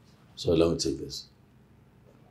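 A man speaks a few words close by, calmly.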